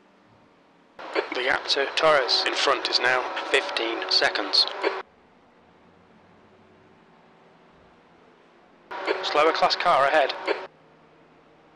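A man commentates with animation through a microphone.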